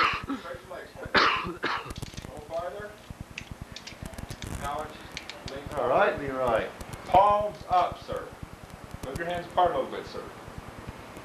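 A middle-aged man explains calmly and closely.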